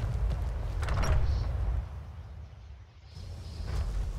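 A heavy wooden door opens.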